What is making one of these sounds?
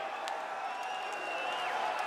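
A young woman screams with excitement close by.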